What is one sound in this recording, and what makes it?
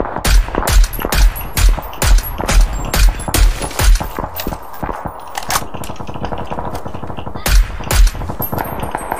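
Rifle shots fire again and again, loud and sharp.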